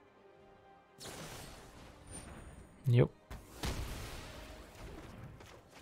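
A magical whoosh sweeps past.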